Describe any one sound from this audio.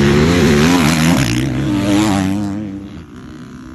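A dirt bike engine roars loudly close by, revving as it passes.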